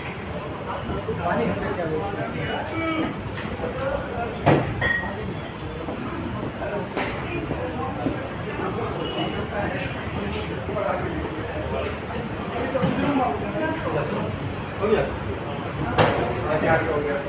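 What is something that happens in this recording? A crowd of men chatters nearby in a large room.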